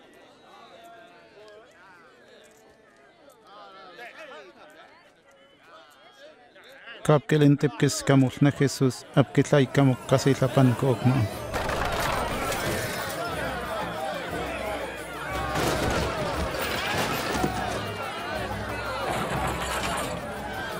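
A large crowd murmurs and shouts all around.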